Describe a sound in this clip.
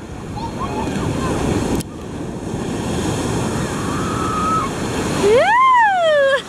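Waves crash and surge loudly close by.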